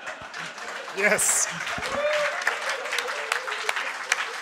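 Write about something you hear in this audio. A crowd of men laughs and cheers.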